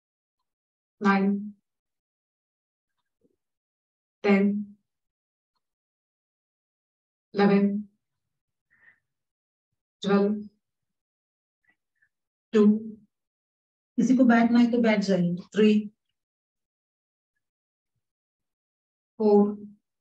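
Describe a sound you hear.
A woman calls out short words at intervals over an online call.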